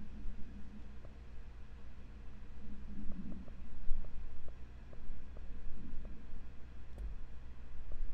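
Soft clicks tick as menu selections change.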